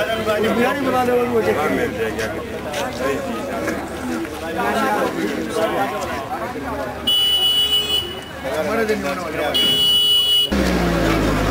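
A crowd of men murmurs outdoors.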